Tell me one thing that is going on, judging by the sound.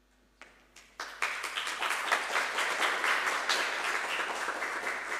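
An audience applauds with steady clapping.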